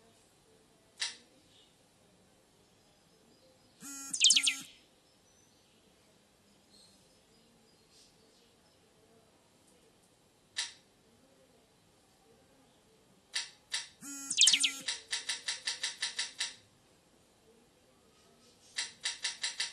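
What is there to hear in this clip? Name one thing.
An arcade machine gives short electronic beeps and chimes as its settings are changed.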